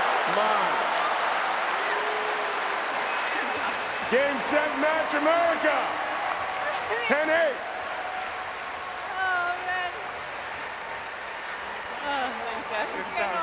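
A large crowd cheers and chatters in a big open arena.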